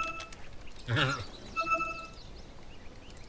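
A short electronic chime rings twice.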